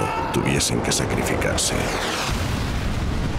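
A burning aircraft roars through the air.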